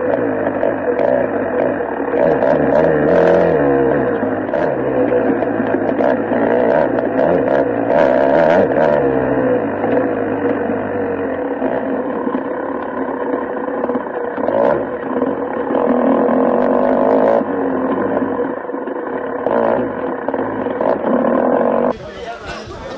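A dirt bike engine roars and revs up and down close by.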